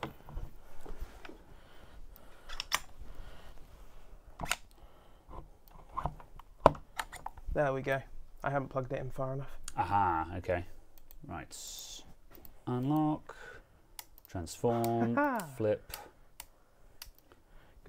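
Keys clatter as a man types.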